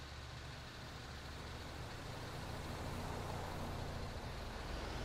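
A car passes by close.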